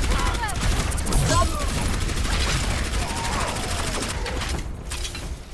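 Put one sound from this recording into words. A game weapon fires rapid bursts of shots.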